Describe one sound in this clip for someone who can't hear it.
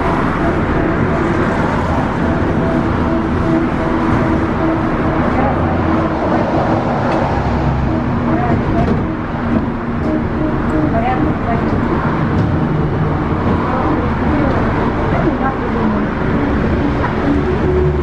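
A vehicle's engine hums steadily from inside while driving.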